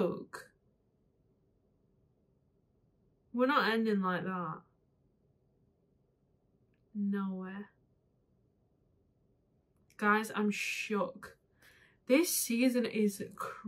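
A young woman talks expressively into a nearby microphone, in short bursts with pauses.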